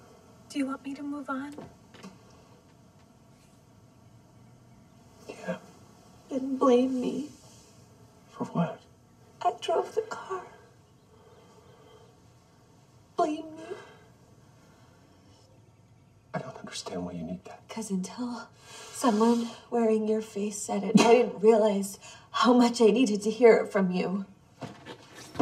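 A woman speaks softly and tearfully close by.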